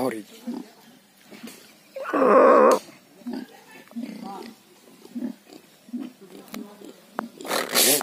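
A pig grunts and snorts softly, close by.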